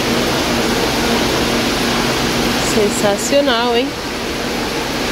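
Water splashes and trickles steadily close by.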